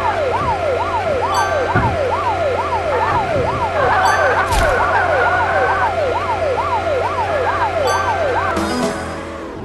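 A police siren wails rapidly up and down.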